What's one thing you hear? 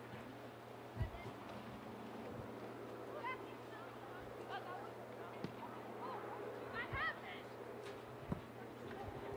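A soccer ball thumps when kicked.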